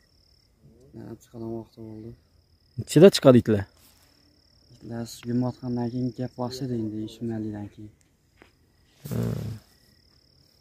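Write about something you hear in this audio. A teenage boy talks nearby in short bursts, outdoors.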